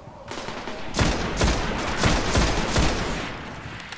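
A rifle fires in quick bursts of loud, echoing shots.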